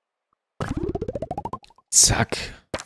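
A game menu opens with a quick rising chime.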